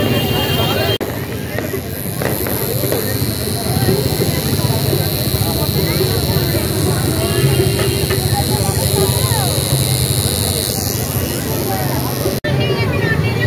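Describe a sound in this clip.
A tattoo machine buzzes steadily.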